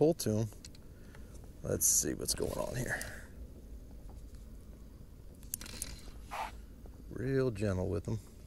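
A fishing reel clicks as line is reeled in.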